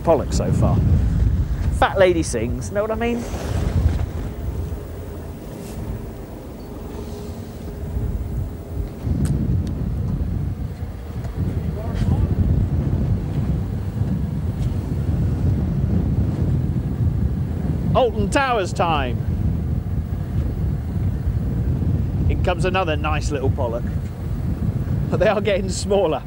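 Wind roars steadily outdoors.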